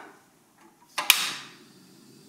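A gas stove clicks and ignites with a whoosh.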